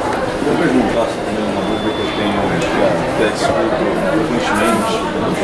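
A man speaks calmly through a loudspeaker in a large room.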